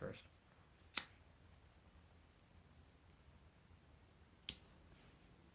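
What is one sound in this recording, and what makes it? A lighter clicks.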